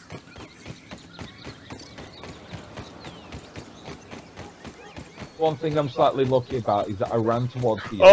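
Soft footsteps crunch on dirt.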